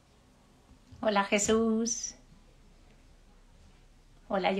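A woman speaks warmly and close to a microphone.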